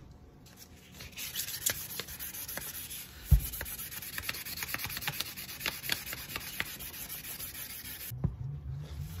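A gloved hand scrubs a metal pipe with a rough, rasping sound.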